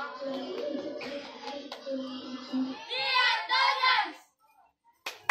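A group of young girls sings together outdoors.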